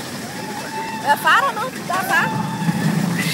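Riders on a roller coaster scream in the distance.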